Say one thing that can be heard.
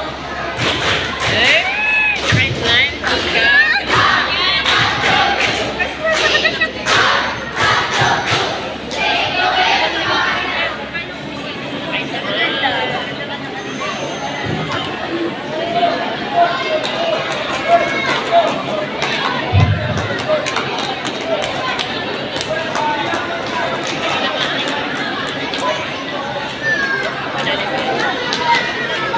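A large crowd of children chatters and shouts in a big echoing hall.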